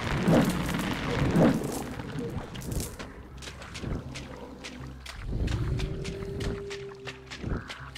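Footsteps squelch slowly through wet grass and mud.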